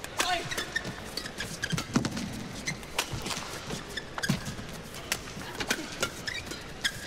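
Sports shoes squeak sharply on a court floor.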